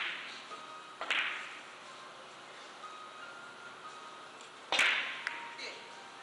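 Billiard balls clack against each other and thud off the cushions.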